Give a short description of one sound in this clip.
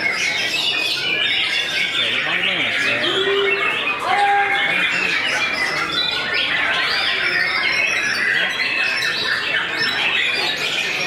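A songbird sings a fast, rich, warbling song close by.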